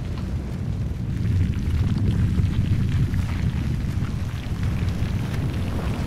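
A huge stone block grinds and rumbles as it rises from the ground.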